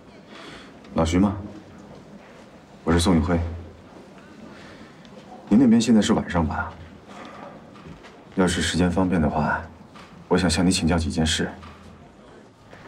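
A young man speaks calmly and politely into a phone, close by.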